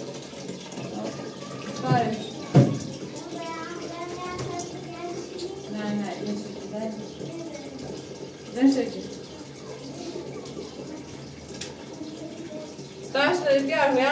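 Water runs from a tap.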